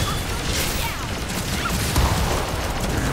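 An explosion bursts.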